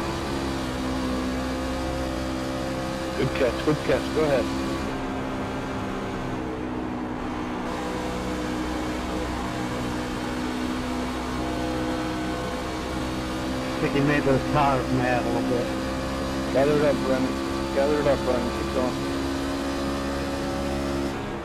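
A V8 racing truck engine drones at full throttle.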